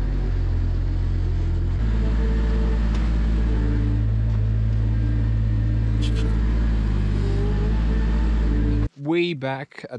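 A small loader's diesel engine rumbles steadily nearby.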